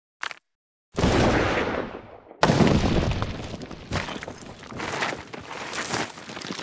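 A heavy stone slab grinds upward.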